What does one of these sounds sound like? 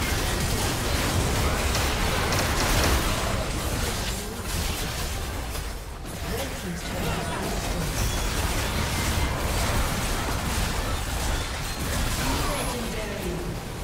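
Spell effects and blows clash and crackle in a busy game fight.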